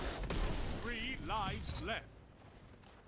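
An explosion booms and crackles.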